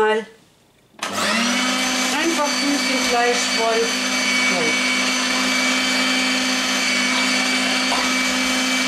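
An electric grinder motor hums steadily.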